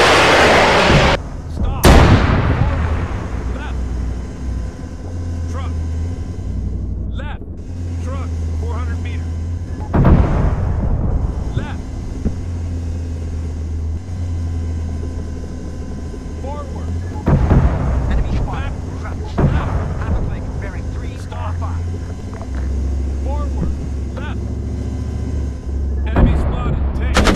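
Heavy explosions boom one after another, close and far.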